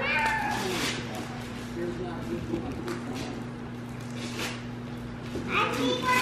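Wrapping paper rustles and crinkles.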